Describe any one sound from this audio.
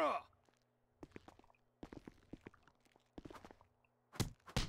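Heavy metallic footsteps thud on a concrete floor.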